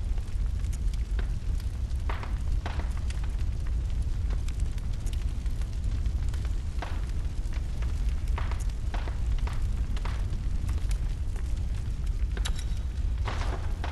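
Soft clicks sound as menu items are selected.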